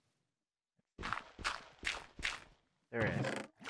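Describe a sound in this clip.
A shovel digs into loose ground with short repeated crunches.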